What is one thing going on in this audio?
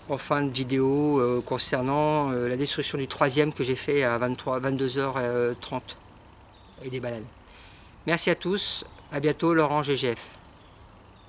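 A middle-aged man speaks close by, calmly and with feeling.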